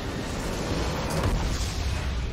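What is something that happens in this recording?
A tower collapses with a loud booming blast.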